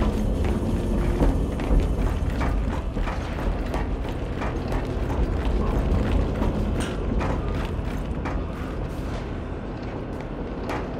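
Heavy footsteps clank on a metal grate floor.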